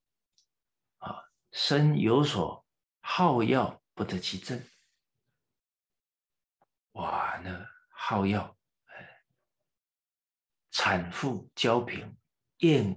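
A middle-aged man speaks calmly and clearly into a close microphone, with pauses.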